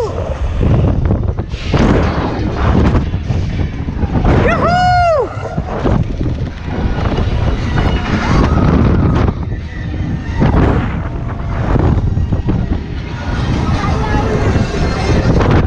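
Wind rushes and buffets loudly as a fairground ride swings high through the air.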